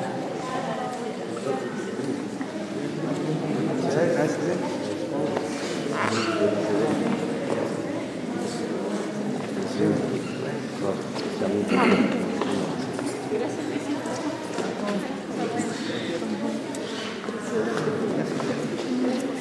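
A crowd of men and women chatter all around in an echoing hall.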